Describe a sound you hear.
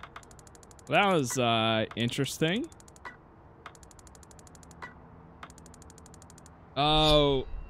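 Rapid electronic ticks run as a score counts up.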